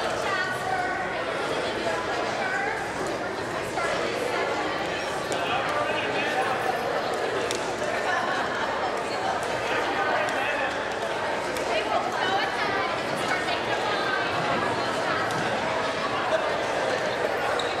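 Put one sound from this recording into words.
A crowd of people chatter throughout a large echoing hall.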